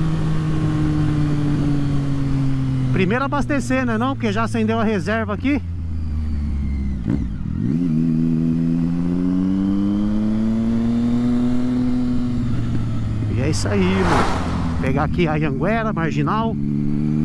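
A motorcycle engine hums steadily and rises and falls in pitch.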